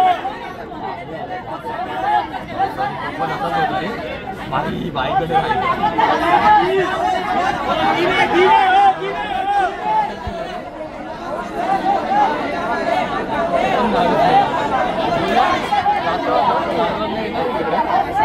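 A crowd chatters in the background throughout.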